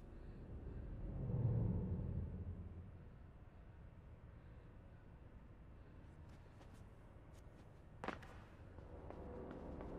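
A small figure's footsteps patter across a hard floor.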